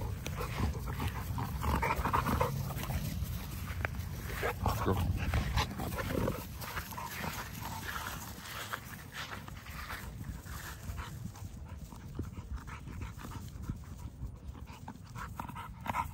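Dogs growl and snarl as they play-fight.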